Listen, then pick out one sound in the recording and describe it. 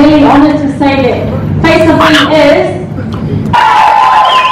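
A woman talks loudly close by.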